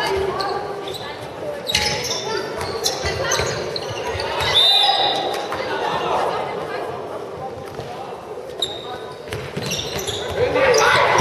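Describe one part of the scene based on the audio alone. Young girls shout and call out to each other in a large echoing hall.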